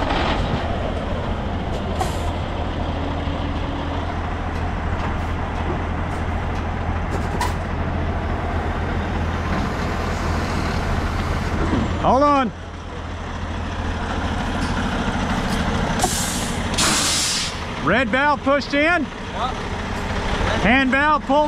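A heavy truck engine idles with a steady low rumble.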